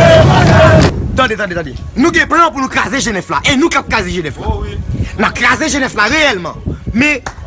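A man speaks forcefully into a microphone.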